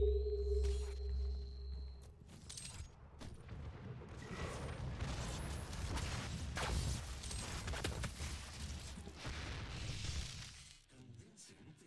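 Heavy gunfire blasts and rumbles.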